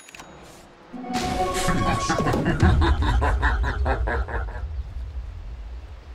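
Magical effects chime and whoosh.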